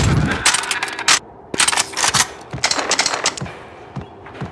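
Gunshots crack sharply in a row.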